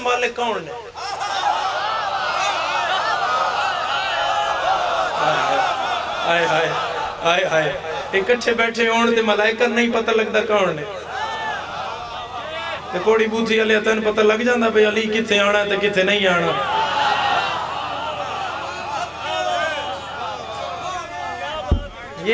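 A young man speaks with animation through a microphone and loudspeakers.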